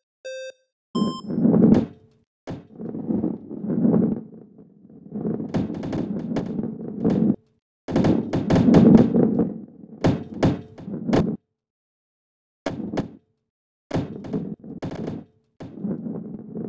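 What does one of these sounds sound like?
A ball rolls and thuds against walls.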